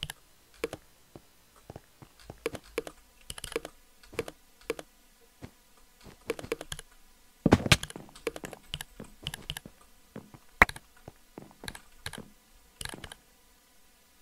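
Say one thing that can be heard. Blocks are placed one after another with soft, quick thuds.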